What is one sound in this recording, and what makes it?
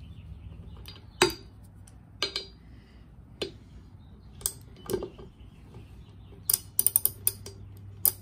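A ratchet wrench clicks rapidly.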